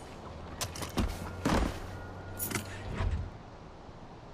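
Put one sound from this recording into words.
A quad bike engine starts and idles with a low rumble.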